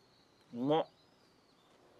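A man exclaims briefly and quietly nearby.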